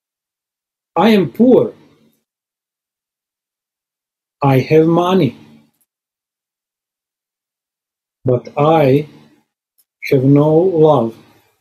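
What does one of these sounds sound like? A man chants in short phrases with pauses, heard through an online call.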